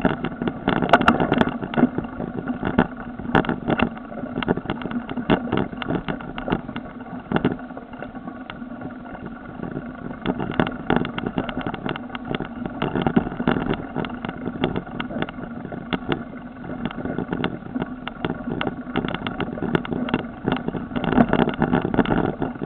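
A mountain bike rattles and clatters over a bumpy dirt trail.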